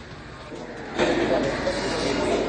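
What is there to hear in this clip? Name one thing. A crowd murmurs indoors.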